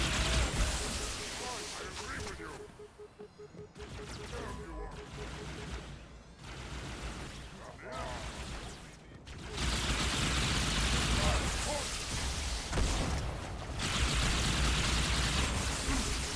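Energy weapons fire in rapid, crackling bursts.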